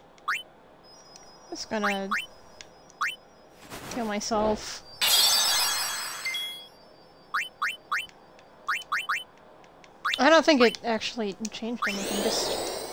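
Short electronic menu blips chirp again and again.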